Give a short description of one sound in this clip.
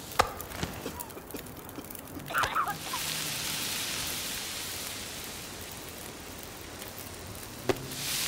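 A fire crackles and hisses in a fireplace.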